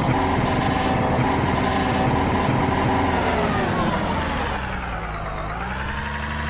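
A racing car engine runs loudly and slows down, its pitch dropping.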